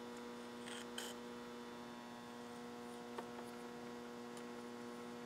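Metal tools click and tap lightly against each other.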